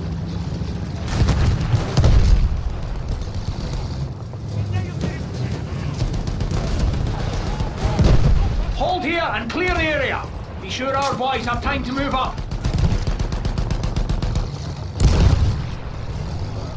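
A tank cannon fires with heavy booms.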